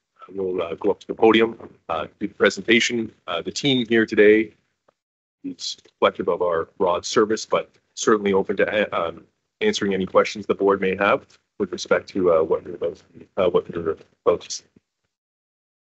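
A man speaks calmly through a microphone, heard over an online call.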